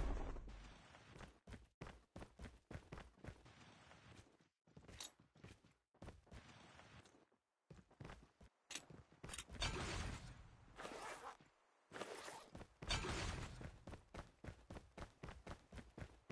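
Footsteps run.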